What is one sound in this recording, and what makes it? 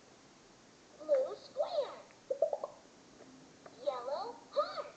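A toy train plays a bright electronic tune and chirps.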